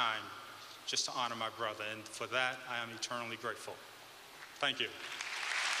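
A man speaks solemnly through a microphone in a large echoing hall.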